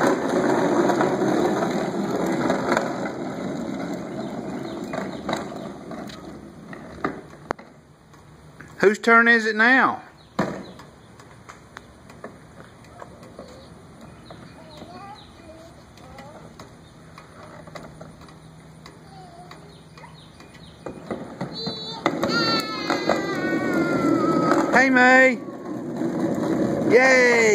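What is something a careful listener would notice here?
Plastic wheels of a ride-on toy rumble over concrete.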